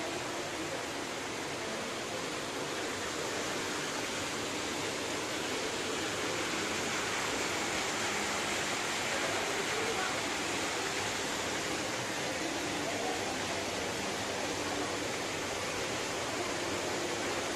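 Water trickles and bubbles steadily nearby.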